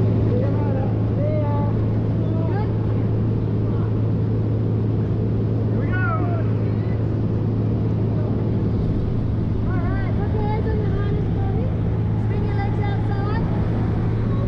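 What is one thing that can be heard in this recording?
A man shouts with excitement close by over the engine.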